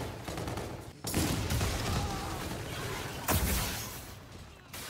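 Gunshots and explosions boom from a video game.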